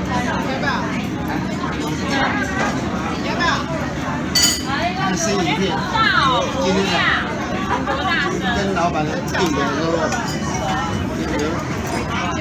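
Many adults and children chatter at once in a busy dining room.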